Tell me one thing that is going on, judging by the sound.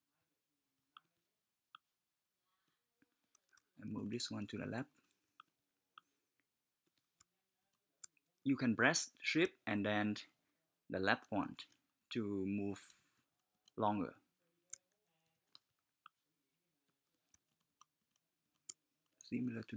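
A computer mouse clicks softly now and then.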